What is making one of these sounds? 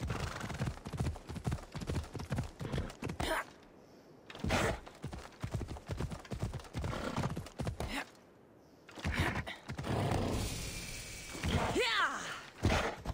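Horse hooves thud steadily on rough ground.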